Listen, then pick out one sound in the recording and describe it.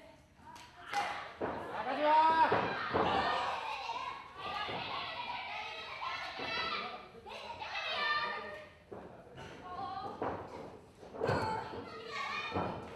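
An audience shouts and cheers in an indoor hall.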